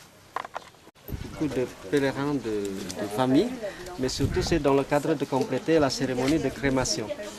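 A crowd of men and women talk and call out loudly nearby.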